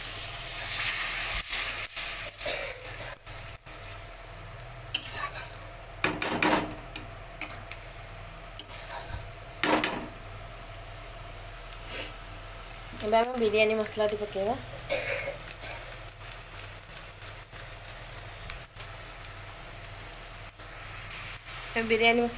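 Sauce sizzles and bubbles in a hot pan.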